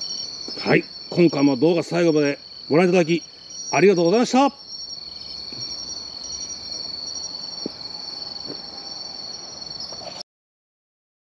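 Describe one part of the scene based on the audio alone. Insects trill steadily and shrilly outdoors at night.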